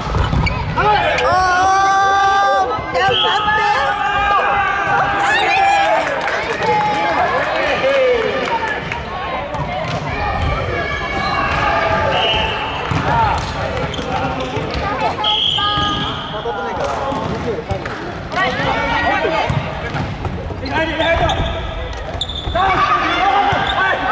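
Young women and men shout and call out to each other in a large echoing hall.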